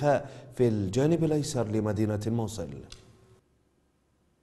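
A man speaks formally into microphones.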